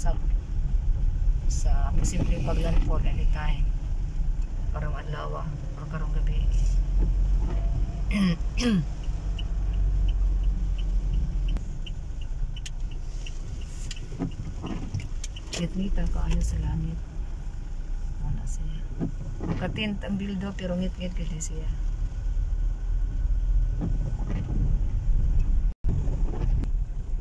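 Rain patters on a car's windshield.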